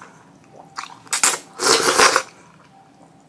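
A young woman sips soup noisily from a spoon.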